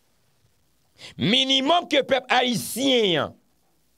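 A young man speaks with animation, close into a microphone.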